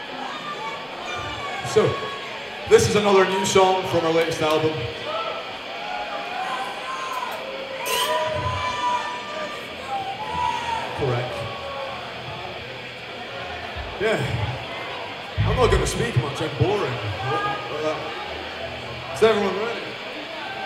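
A man shouts into a microphone through loud speakers.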